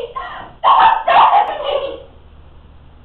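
A young woman shouts loudly, close by.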